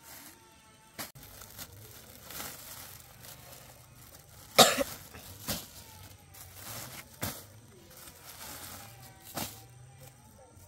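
Plastic bags rustle and crinkle as they are set down on a sack.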